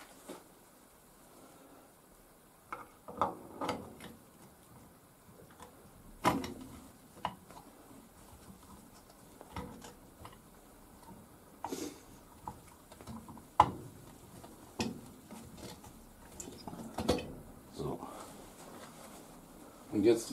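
Metal parts clink and tap as they are handled and fitted together.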